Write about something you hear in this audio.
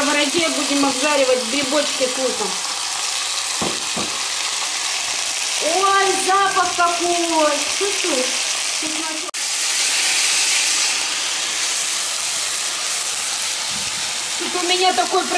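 Food sizzles steadily in a hot frying pan.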